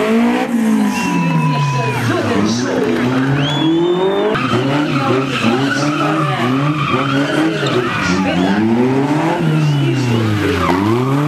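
Tyres squeal on the road.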